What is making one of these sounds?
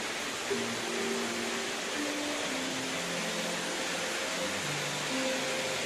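Water pours from a fountain and splashes into a pool.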